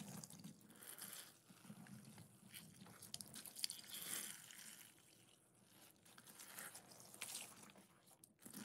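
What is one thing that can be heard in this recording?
Liquid pours and splashes onto sponges.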